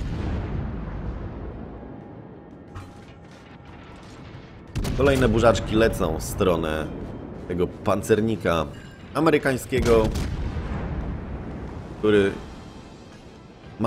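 Heavy naval guns boom and rumble.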